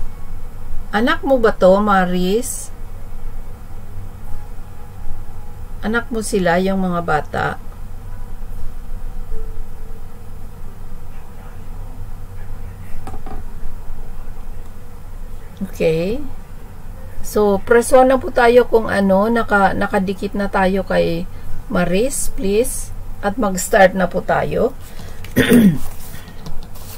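An older woman speaks calmly through a webcam microphone on a live stream.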